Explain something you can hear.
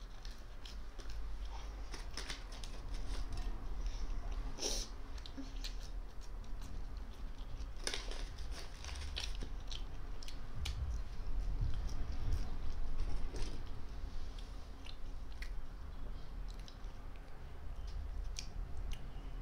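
A boy crunches crisp snacks close by.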